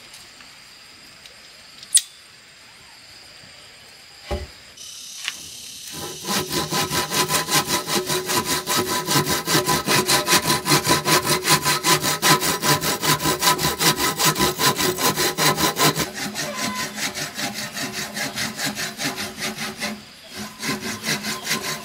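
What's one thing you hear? A blade scrapes bark off a log in quick, steady strokes.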